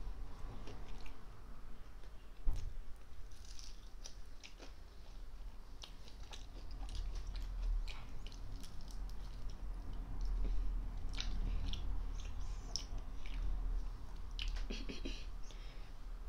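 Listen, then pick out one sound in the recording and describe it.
A boy chews and crunches food close by.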